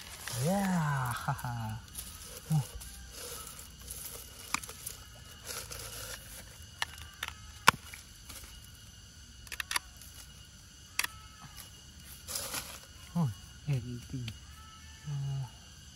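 Dry leaves crackle and rustle under fingers digging in soil.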